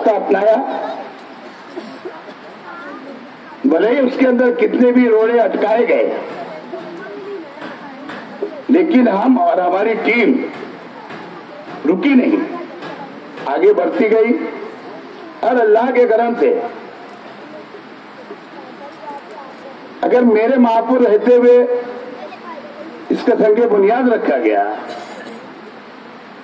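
A middle-aged man speaks forcefully into a microphone, in bursts with pauses, through a loudspeaker outdoors.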